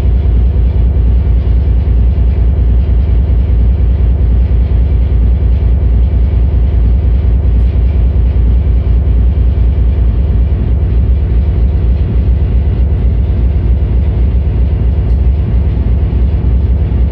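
Loud electronic music with a deep, throbbing bass plays steadily through speakers.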